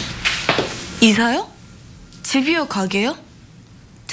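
A second young woman asks a question calmly, close by.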